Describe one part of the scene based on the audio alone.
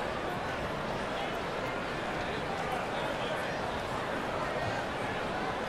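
A large crowd murmurs steadily in a big echoing arena.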